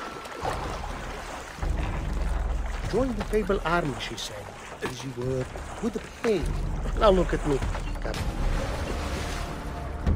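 Footsteps wade and slosh through shallow water.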